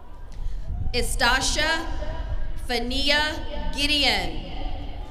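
A woman announces through a loudspeaker outdoors.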